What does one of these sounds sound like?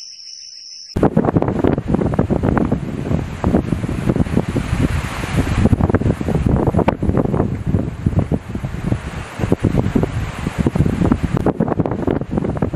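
Strong wind gusts and buffets loudly outdoors.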